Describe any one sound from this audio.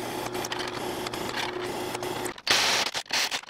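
A drill press hums as it bores through a metal plate.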